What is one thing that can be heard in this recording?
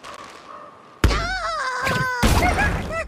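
A cartoon bird squawks in flight.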